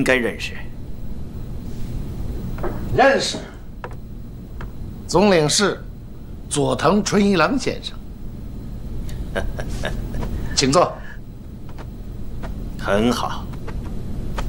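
A middle-aged man speaks cheerfully nearby.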